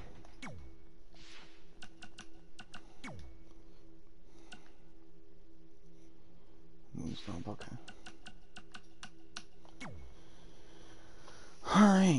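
Short electronic clicks tick as a menu is scrolled through.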